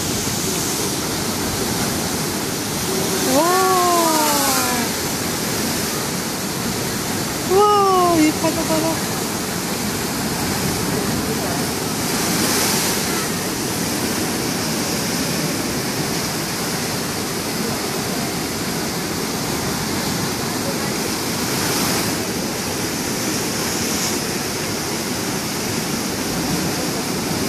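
Heavy waves crash and roar against rocks.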